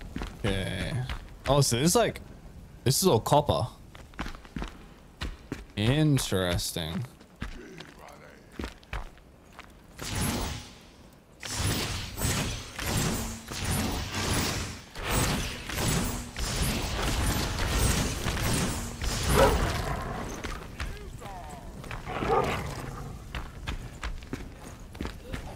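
A young man talks into a close microphone with animation.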